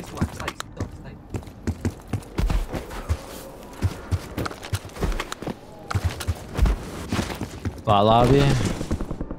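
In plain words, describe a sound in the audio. Footsteps thud quickly on dirt.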